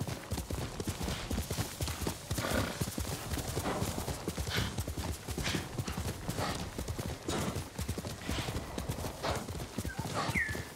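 Horse hooves gallop quickly over soft ground.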